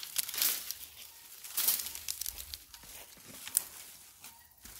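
Dry plant stalks rustle and crackle as they are pulled.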